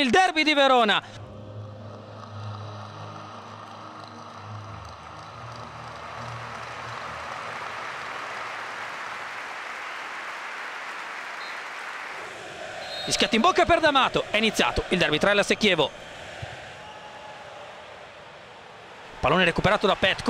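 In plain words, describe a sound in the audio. A large crowd murmurs and chants in a stadium.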